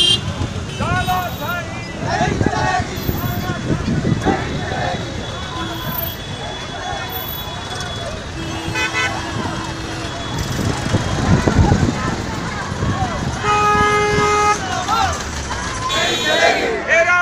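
A crowd of people talks and calls out outdoors.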